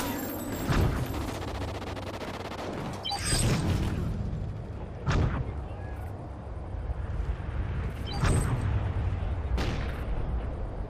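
A sniper rifle fires sharp, echoing shots.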